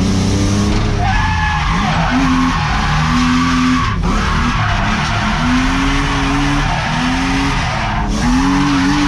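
Tyres screech on tarmac as a car slides sideways.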